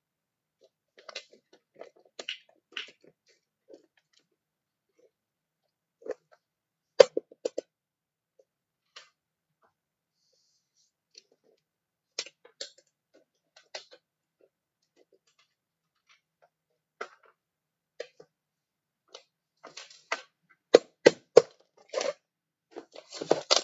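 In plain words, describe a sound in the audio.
Plastic toys click and clatter against a hard surface.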